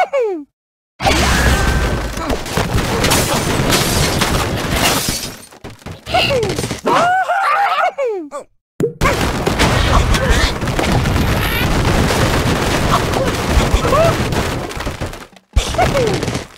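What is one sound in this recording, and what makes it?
Wooden blocks crash and clatter as a structure collapses.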